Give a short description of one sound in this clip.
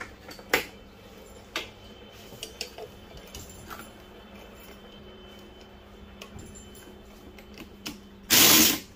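Metal parts clink and knock on a hard surface.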